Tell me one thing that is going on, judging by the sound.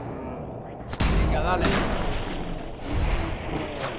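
A blast booms and crackles.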